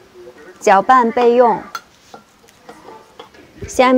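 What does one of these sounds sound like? A spoon scrapes and clinks against a ceramic bowl while stirring.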